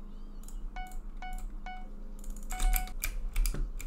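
Short pitched chimes ring quickly one after another.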